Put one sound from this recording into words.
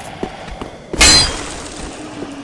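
A wooden crate smashes apart.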